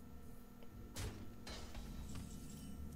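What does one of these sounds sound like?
A short game chime and whoosh sound.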